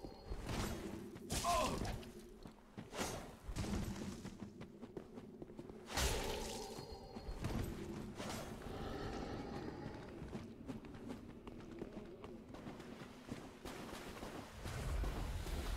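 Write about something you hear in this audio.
Footsteps run over leaves and ground.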